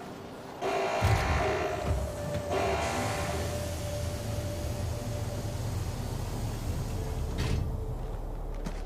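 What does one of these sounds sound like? A heavy metal door grinds and rumbles open.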